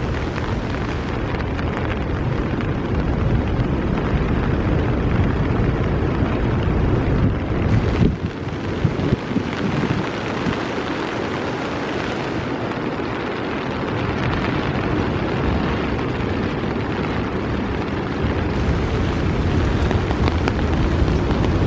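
Steady rain patters on leaves and a wet path outdoors.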